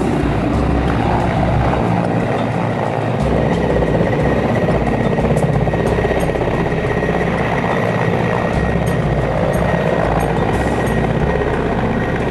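A helicopter's rotor thumps and its engine whines as it lands.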